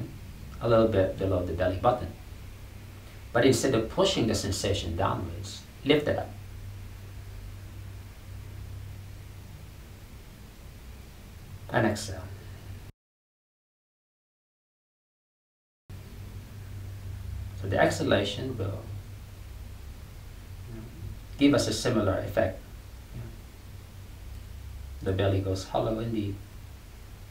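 A man speaks calmly and slowly close by, with long pauses.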